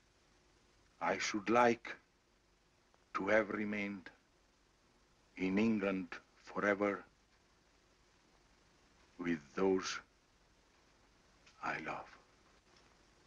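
A man speaks calmly into a phone, in pauses.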